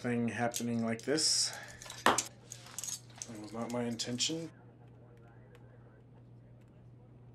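Metal handcuffs click shut.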